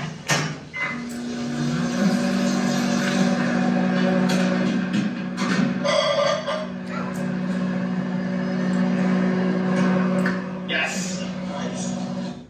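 A microwave oven hums steadily.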